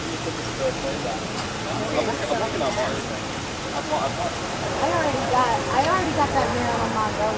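A man talks at a distance outdoors.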